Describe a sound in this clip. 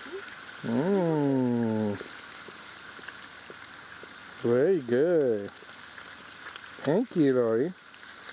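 A gas camp stove burner hisses under a pot.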